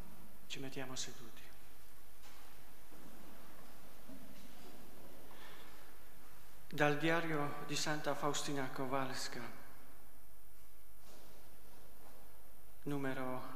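A man speaks calmly into a microphone in a large echoing room, with pauses between phrases.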